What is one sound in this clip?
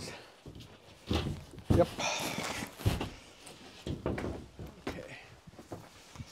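A large board scrapes and thumps against a wall frame.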